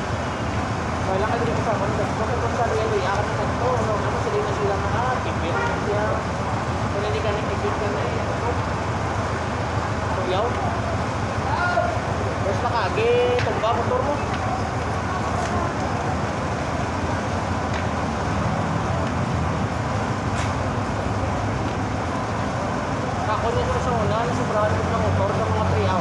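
A middle-aged man talks quietly through a face mask nearby.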